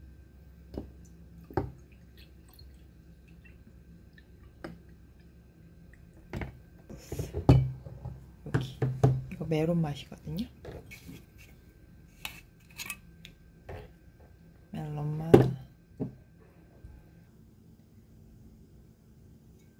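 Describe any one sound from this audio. Liquid pours from a bottle into a glass.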